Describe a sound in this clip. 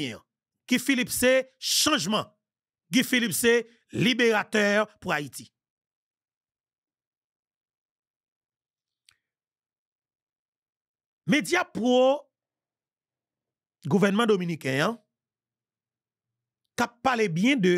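A man speaks with animation into a close microphone, in bursts with long pauses.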